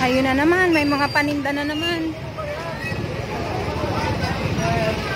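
A crowd of men and women talk and call out outdoors.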